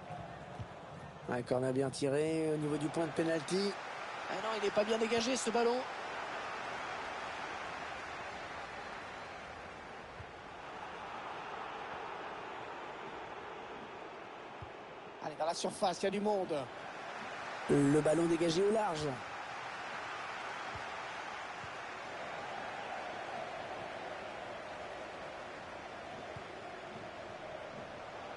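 A large stadium crowd murmurs steadily in the background.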